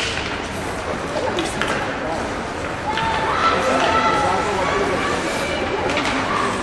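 Ice skates scrape and hiss across the ice.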